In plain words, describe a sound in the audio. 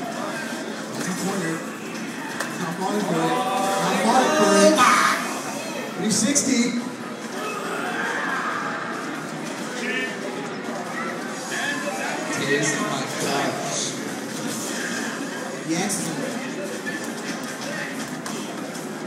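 A fighting video game plays through a loudspeaker, with punches, shouts and effects.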